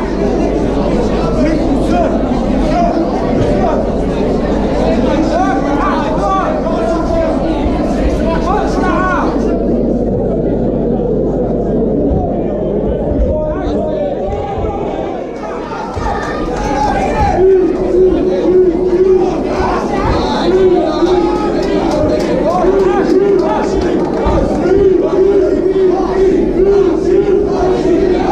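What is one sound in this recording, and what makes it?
A crowd in a large hall cheers and shouts.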